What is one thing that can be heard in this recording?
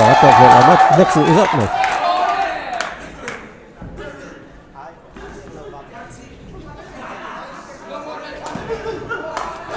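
A crowd shouts and cheers.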